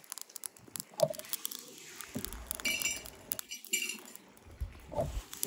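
Flames roar and crackle in a furnace.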